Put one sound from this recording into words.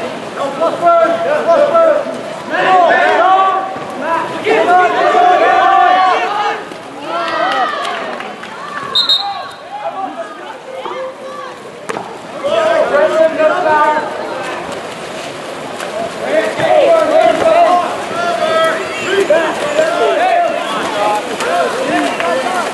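A crowd of spectators shouts and cheers loudly outdoors.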